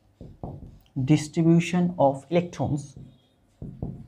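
A young man speaks calmly nearby.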